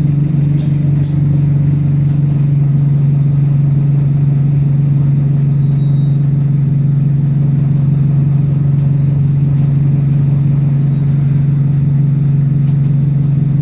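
A bus rattles gently as it drives along.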